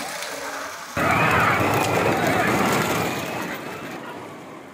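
A crowd of people cheers and shouts outdoors.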